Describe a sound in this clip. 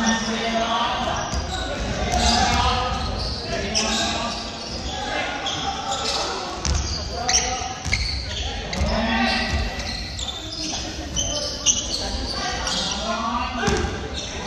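Young men call out and talk to each other in a large echoing hall.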